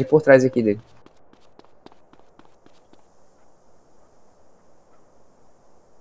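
Footsteps run quickly and steadily on pavement.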